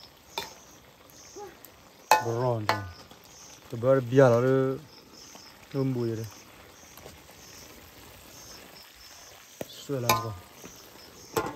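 A metal ladle scrapes and stirs food in a metal wok.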